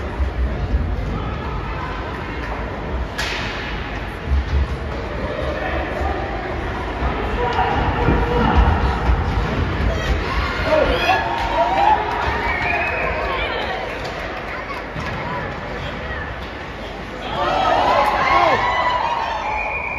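Spectators chatter in a large echoing arena.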